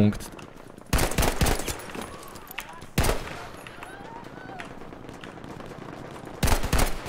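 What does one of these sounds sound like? A rifle fires sharp single shots.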